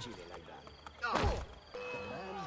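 A body thuds heavily onto stone.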